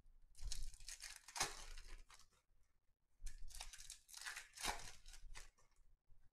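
Stacks of trading cards riffle and slap together in hands.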